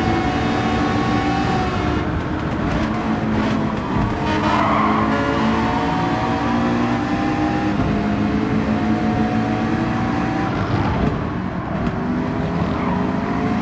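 A race car engine roars loudly, its pitch rising and dropping with gear changes.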